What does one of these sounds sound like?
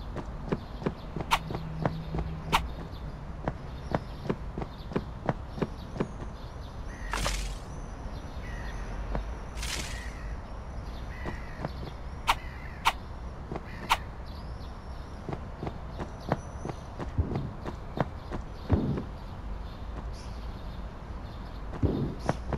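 Footsteps tap quickly and steadily on hard ground.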